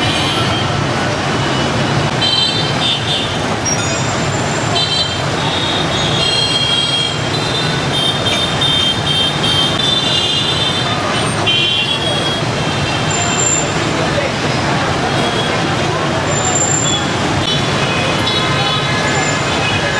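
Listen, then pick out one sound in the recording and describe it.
Dense motorbike and car traffic rumbles steadily on a busy street.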